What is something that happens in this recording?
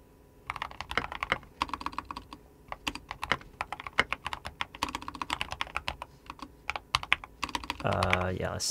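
Keys clatter rapidly as someone types on a keyboard.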